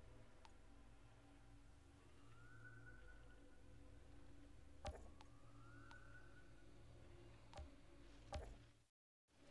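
Short electronic clicks sound at intervals.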